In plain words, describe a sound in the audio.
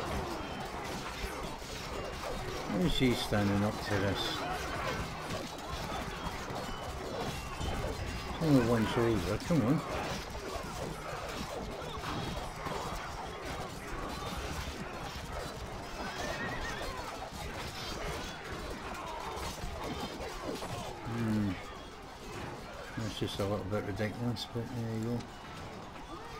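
A large battle roars with clashing weapons and shouting soldiers.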